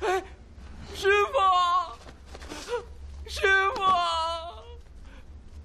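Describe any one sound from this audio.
A man cries out loudly in drawn-out calls.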